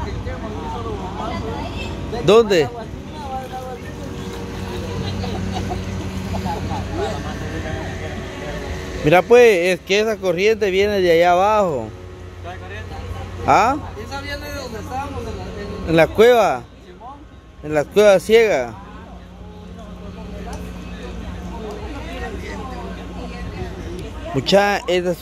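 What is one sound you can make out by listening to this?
Water splashes gently as people move in it.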